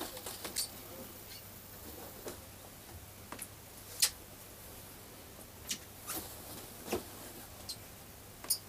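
Clothes rustle softly with light knocks.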